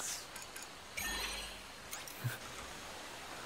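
An interface chime sounds.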